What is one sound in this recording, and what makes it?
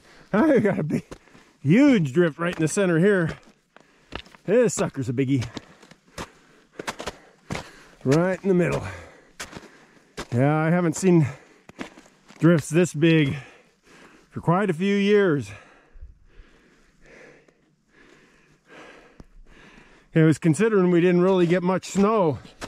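Footsteps crunch on snow and loose stones.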